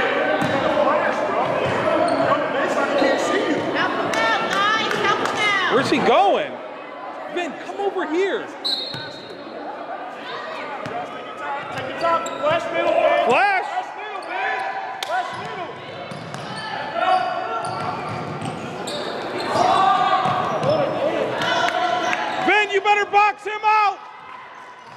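Young players shout and call out in an echoing gym.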